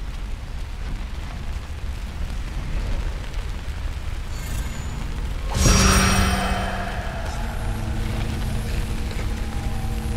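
A fire roars inside a furnace.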